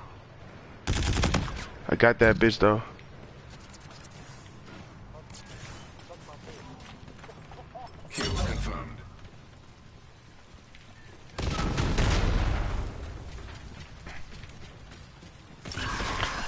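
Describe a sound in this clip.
A machine gun fires in short bursts.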